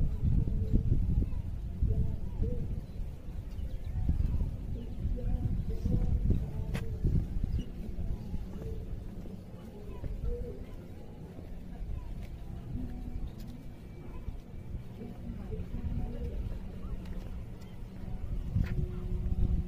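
A flag flaps in the wind.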